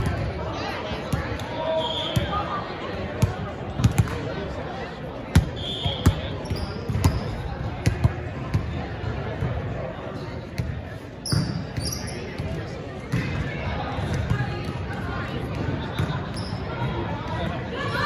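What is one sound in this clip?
Young women chatter and call out across the court.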